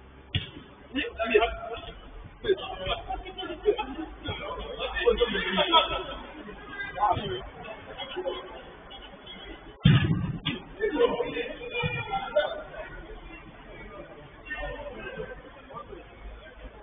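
Men shout and call out to each other, echoing in a large hall.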